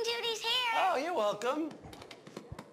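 A young girl speaks excitedly nearby.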